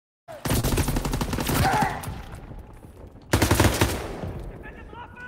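A heavy machine gun fires loud rapid bursts, echoing in an enclosed space.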